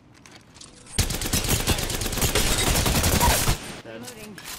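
A rapid-fire gun shoots in a fast, loud burst.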